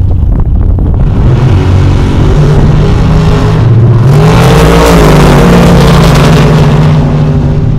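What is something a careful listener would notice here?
A drag racing car roars down the strip at full throttle.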